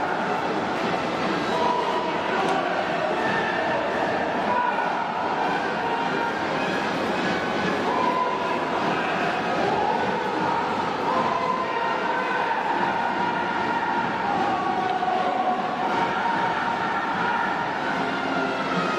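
A brass band plays a lively tune in a large echoing arena.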